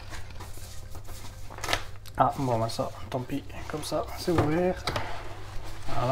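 A plastic wrapping crinkles.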